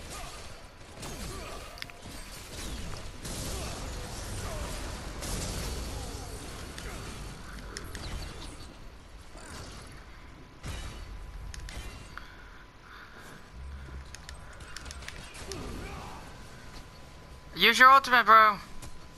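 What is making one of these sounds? Fiery blasts roar and crackle in a video game.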